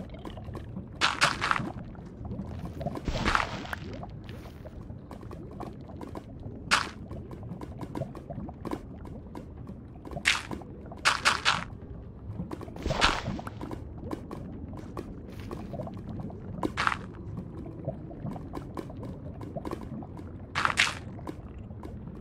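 Stone blocks thud into place again and again.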